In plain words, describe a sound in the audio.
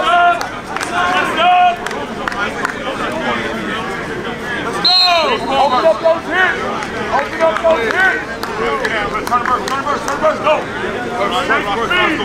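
Several young men shout and call out across an open outdoor field.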